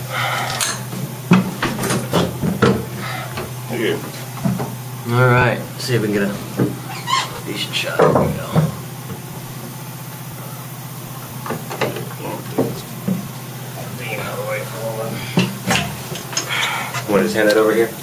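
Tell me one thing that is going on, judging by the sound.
An elderly man talks close by, in short bursts.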